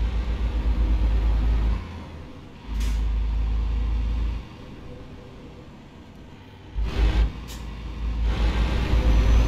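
A heavy truck engine rumbles low, swelling and easing as it drives.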